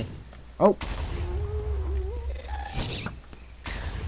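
A ghostly creature wails with a high, eerie cry.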